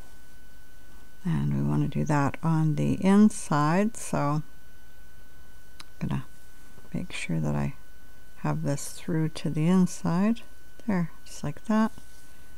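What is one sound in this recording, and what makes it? A crochet hook softly works through yarn.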